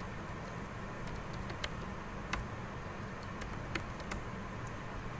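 Computer keys click in short bursts.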